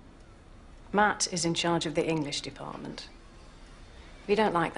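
A middle-aged woman speaks calmly nearby.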